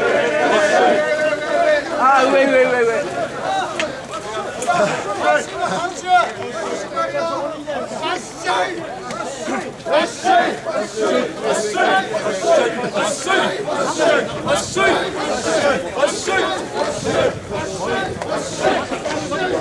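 A crowd of men chant and shout rhythmically close by.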